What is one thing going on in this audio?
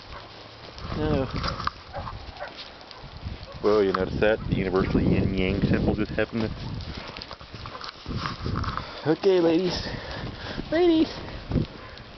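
Dogs growl and whine playfully, close by.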